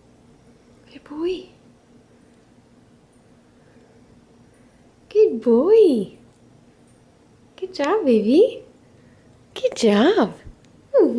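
A cat meows loudly and repeatedly, close by.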